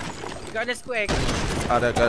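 A grenade bursts with a loud bang.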